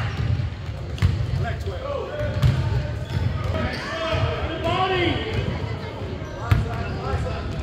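A basketball bounces on a hardwood floor.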